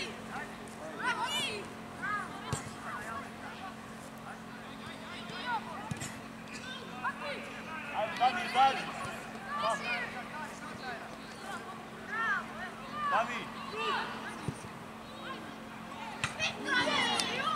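Young players shout to each other across an open pitch.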